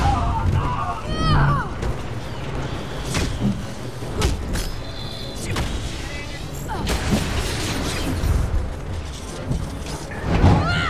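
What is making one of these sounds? Punches and blows land with sharp thuds.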